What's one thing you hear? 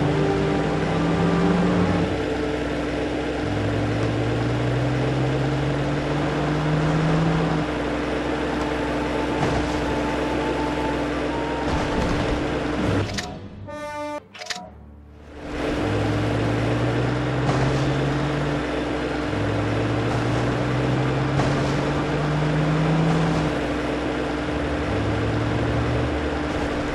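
A vehicle engine drones, rising in pitch again and again as it shifts gears.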